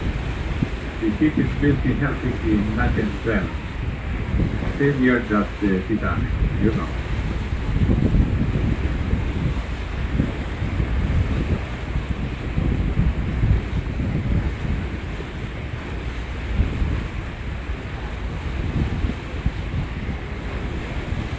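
Wind buffets loudly outdoors over open water.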